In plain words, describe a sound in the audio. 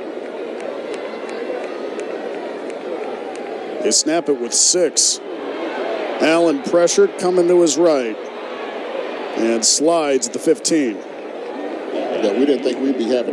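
A crowd murmurs and cheers outdoors throughout.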